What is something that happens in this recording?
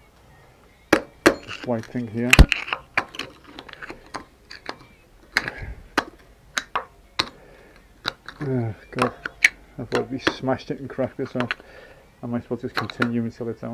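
A metal bar clanks against a metal pulley.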